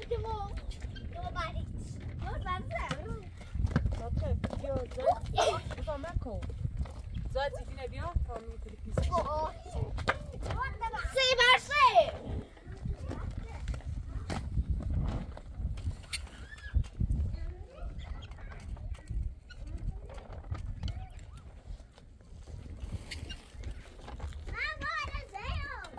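Young children talk and call out with animation nearby.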